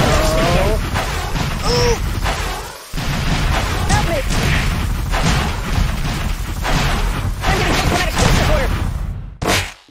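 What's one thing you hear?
Darts whoosh and thud rapidly in a video game.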